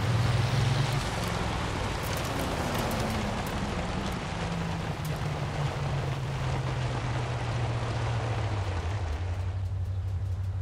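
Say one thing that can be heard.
Tyres crunch over gravel.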